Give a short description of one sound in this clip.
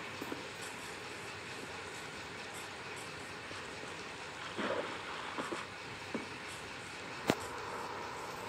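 Soft footsteps pad steadily over grass.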